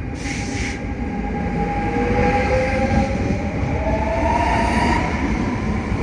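Train wheels screech with a rising whine.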